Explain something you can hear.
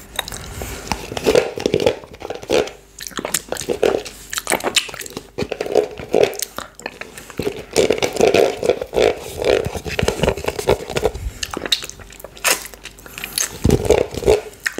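A plastic yoghurt tub crinkles in a man's hands close to a microphone.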